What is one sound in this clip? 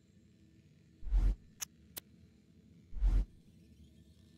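Soft low whooshes swell briefly, twice.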